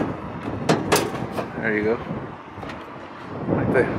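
A metal cabinet door creaks open.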